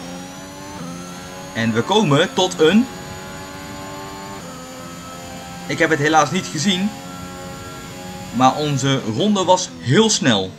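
A racing car engine whines steadily at high revs, shifting pitch as it changes gear.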